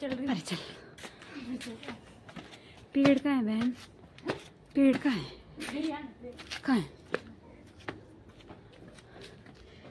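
Footsteps scuff and crunch on rough ground.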